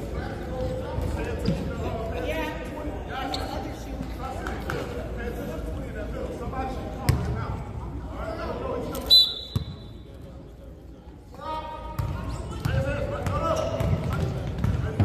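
Voices of people chatter around a large echoing gym.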